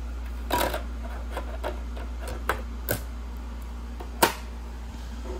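A disc clicks into place as a player's lid is pressed shut.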